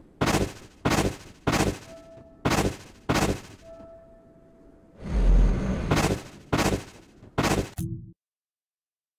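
Footsteps thud in a slow, steady rhythm.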